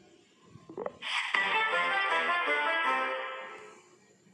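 A short game jingle plays.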